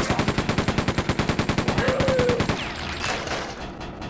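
A shotgun fires in loud blasts.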